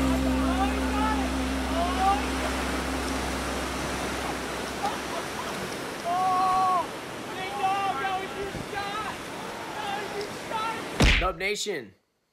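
Waves crash and wash against rocks.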